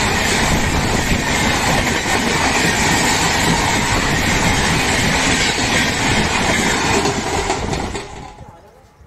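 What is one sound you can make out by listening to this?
A passenger train rumbles and clatters past close by.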